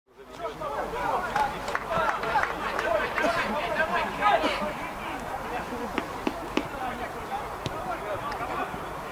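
A crowd of young people chatters and calls out nearby, outdoors.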